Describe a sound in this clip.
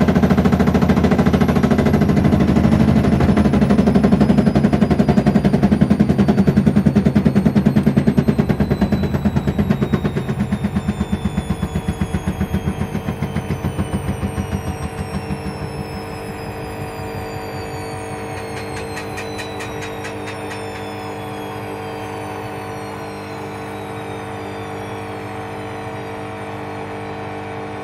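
A washing machine drum spins with a steady rumbling hum that slows and fades into a quieter whir.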